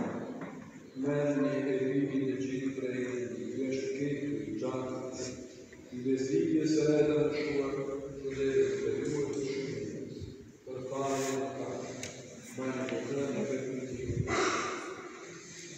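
A man chants in a calm, steady voice through a microphone, echoing in a large hall.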